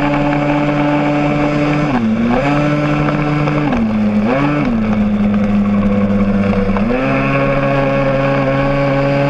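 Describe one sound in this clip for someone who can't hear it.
A motorcycle engine hums close by, its pitch dipping and rising with the throttle.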